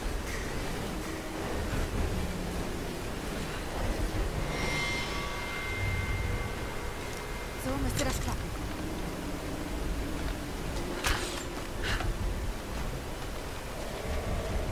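A waterfall rushes steadily.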